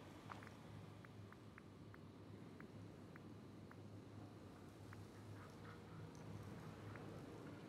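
Soft menu ticks click in quick succession as a list scrolls.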